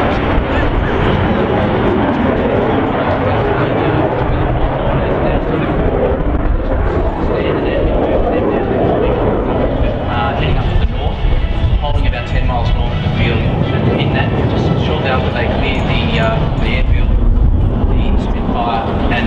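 A jet engine roars loudly overhead as a fighter plane flies past.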